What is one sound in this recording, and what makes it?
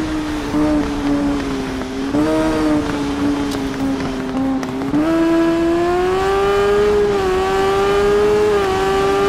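A motorcycle engine whines at high revs, its pitch shifting with the gears.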